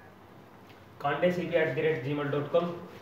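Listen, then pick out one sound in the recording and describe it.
A young man speaks clearly and steadily up close.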